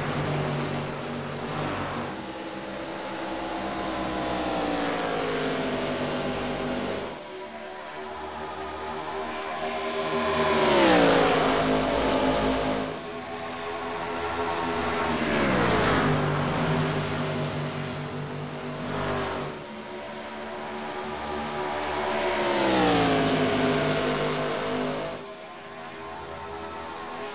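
Race car engines roar at high revs and drop in pitch as the cars pass by.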